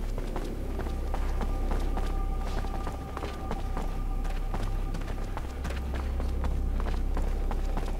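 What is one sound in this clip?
Footsteps run on a hard floor.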